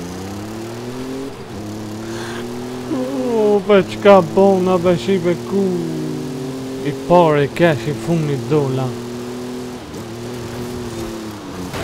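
A car engine hums steadily at high revs.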